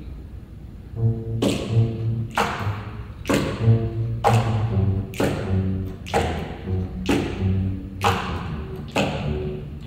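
A big band starts playing a slow tune.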